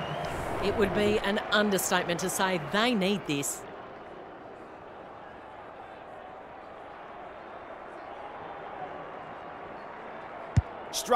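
A large crowd murmurs steadily in the distance.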